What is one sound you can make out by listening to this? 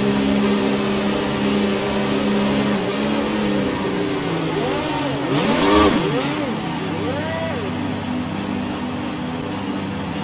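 A racing car engine hums steadily close by.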